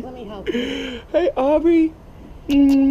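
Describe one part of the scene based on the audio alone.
A man makes playful, silly vocal noises close up.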